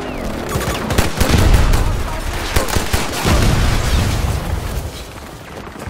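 Pistol shots crack in quick succession.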